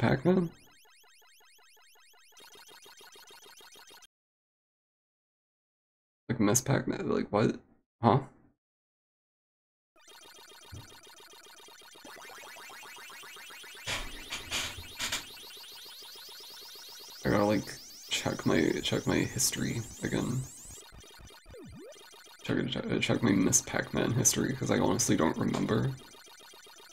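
Electronic chirping and warbling sound effects come from a retro arcade maze game.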